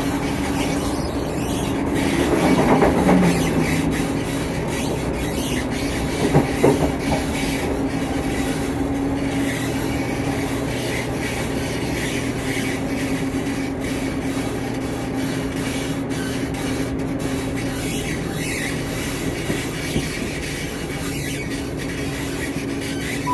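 A train rumbles and hums steadily as it moves.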